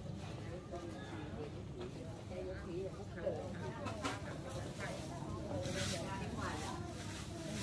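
Women chat casually at a distance outdoors.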